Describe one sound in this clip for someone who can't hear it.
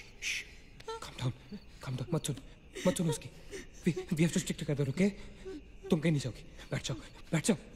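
A young woman whispers fearfully up close.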